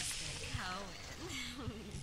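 Electricity crackles and sparks around a hand.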